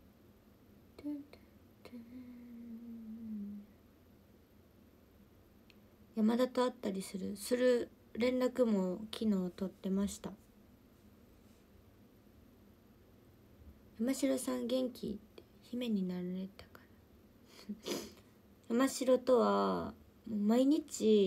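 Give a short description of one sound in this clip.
A young woman speaks calmly and close up, in bursts with pauses.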